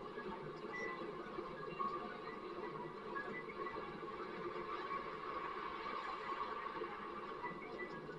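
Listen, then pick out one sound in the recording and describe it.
A hand cart rolls along a pavement.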